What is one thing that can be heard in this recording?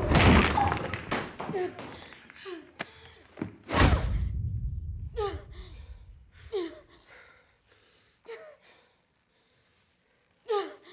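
A woman gasps and moans close by, in short breathy bursts.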